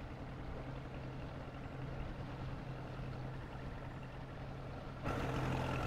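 A boat motor hums steadily on the water.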